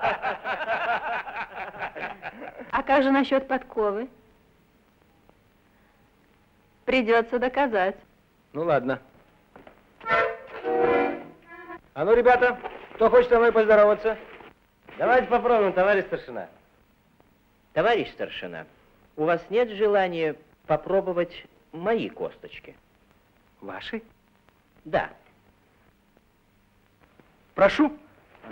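An older man answers warmly with a smile in his voice.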